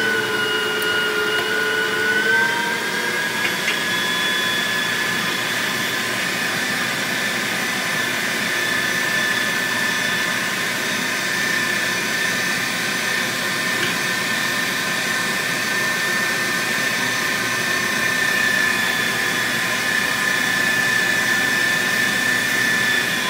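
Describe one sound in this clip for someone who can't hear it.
An electric meat grinder whirs as it grinds meat.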